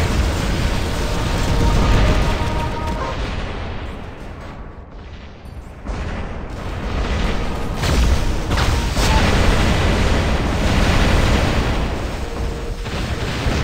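A large robot's heavy metal footsteps stomp and clank.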